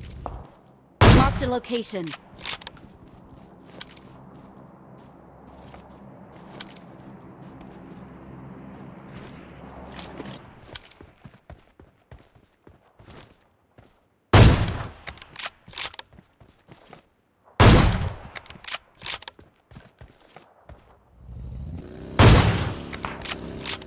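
A rifle fires loud, sharp shots with a ringing echo.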